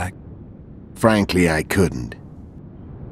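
A second man answers in a deep voice.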